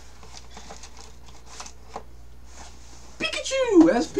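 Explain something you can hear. A cardboard box rustles and scrapes as it is pulled away.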